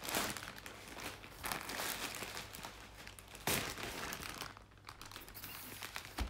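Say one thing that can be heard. A plastic mailer bag rustles as it is handled.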